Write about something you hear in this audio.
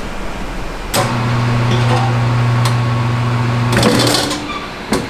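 A tyre changing machine whirs steadily.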